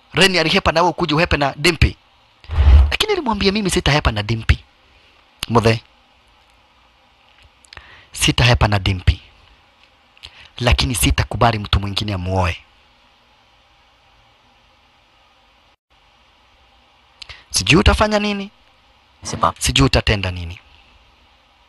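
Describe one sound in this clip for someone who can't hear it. An older man speaks in a low, tense voice close by.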